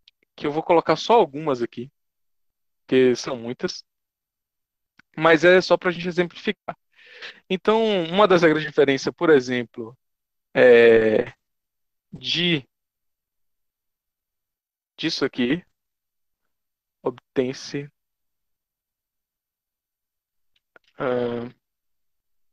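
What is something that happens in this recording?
A man speaks calmly and slowly, in pauses, through a microphone on an online call.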